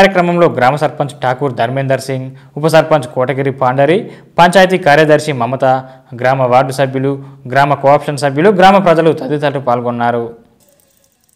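A man speaks loudly and steadily, close to a microphone.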